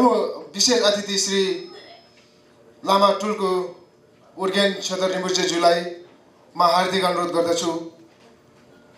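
A young man speaks into a microphone over loudspeakers in a hall, in short phrases with pauses.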